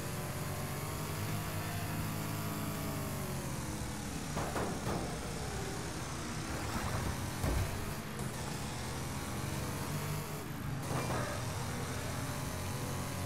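A race car engine roars steadily, its pitch rising and falling with the throttle.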